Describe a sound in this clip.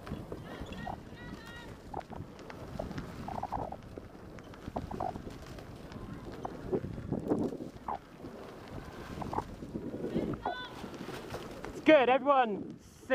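Bicycle tyres roll and crunch over a gravel path.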